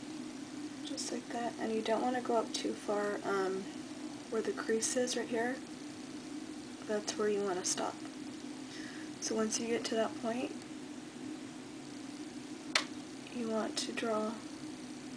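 A young woman talks calmly close to the microphone, in short phrases with pauses.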